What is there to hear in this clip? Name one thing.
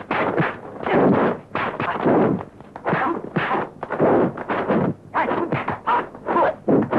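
A man grunts and shouts with effort, close by.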